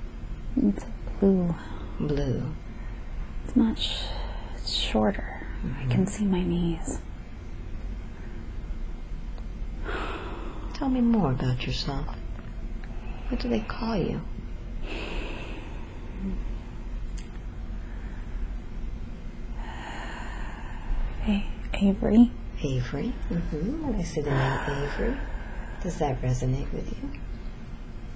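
A young woman mumbles drowsily in her sleep, close by.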